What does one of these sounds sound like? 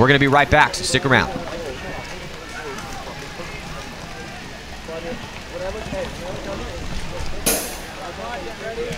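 Several men chatter in the background outdoors.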